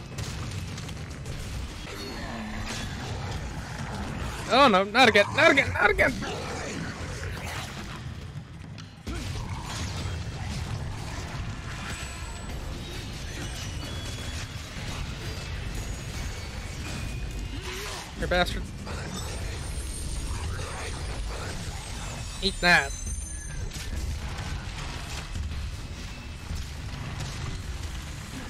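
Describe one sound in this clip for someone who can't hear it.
Blades swing and clash with sharp impacts.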